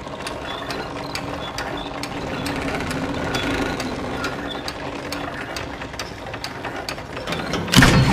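A heavy wooden piano creaks and sways as a rope hoists it up.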